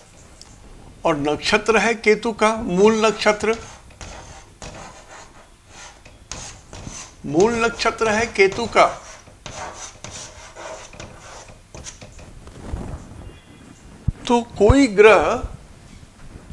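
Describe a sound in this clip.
An elderly man speaks in a calm, teaching manner.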